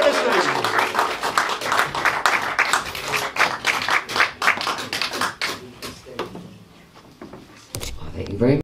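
A man strums an acoustic guitar briskly.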